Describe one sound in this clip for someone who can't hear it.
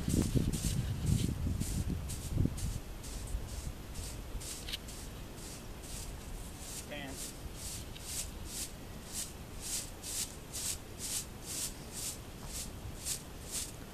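A brush rasps rhythmically over a horse's coat.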